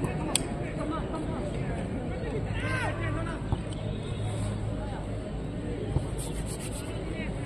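A small crowd murmurs in the stands outdoors.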